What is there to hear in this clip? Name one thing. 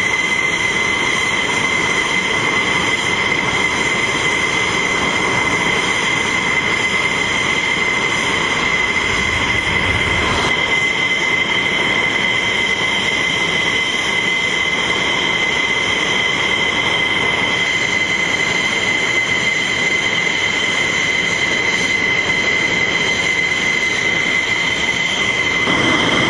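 A jet engine roars with a low rushing noise.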